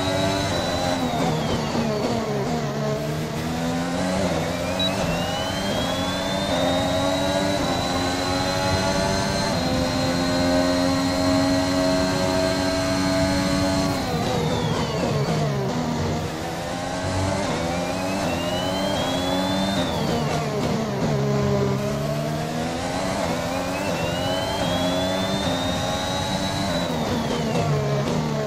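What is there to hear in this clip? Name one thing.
A racing car engine screams as it revs up through the gears and drops as it brakes.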